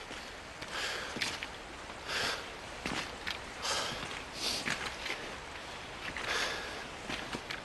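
Footsteps crunch on loose stones at a steady walking pace.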